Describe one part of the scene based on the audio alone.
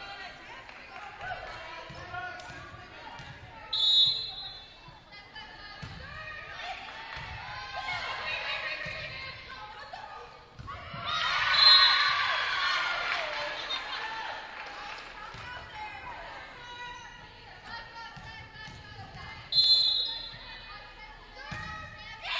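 A volleyball is struck with dull thuds.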